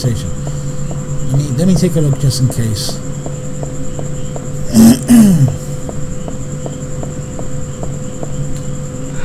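Footsteps tap steadily on hard stairs.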